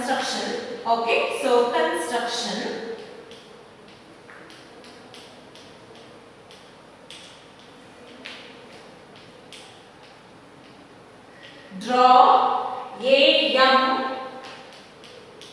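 A woman speaks clearly, close by, as if teaching.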